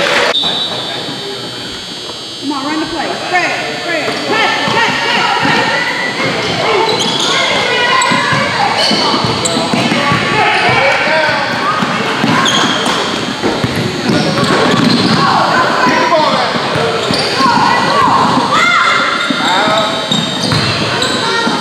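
Spectators talk and call out in an echoing gym.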